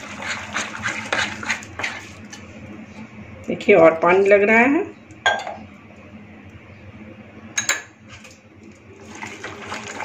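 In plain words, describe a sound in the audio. Fingers squish and stir wet flour dough in a glass bowl.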